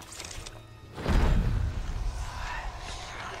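A glowing creature lets out a deep booming rumble.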